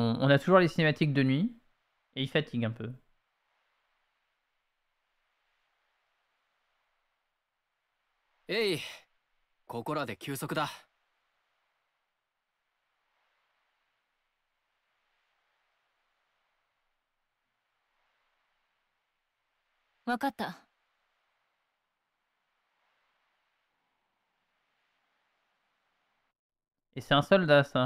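A young man speaks calmly, in short lines with pauses.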